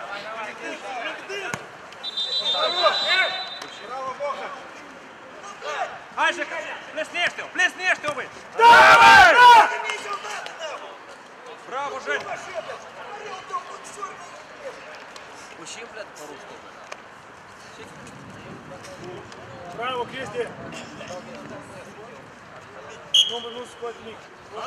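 Young men shout and call out across an outdoor pitch.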